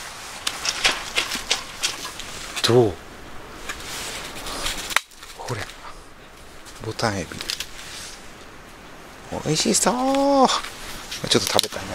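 A plastic tray crinkles as hands handle it.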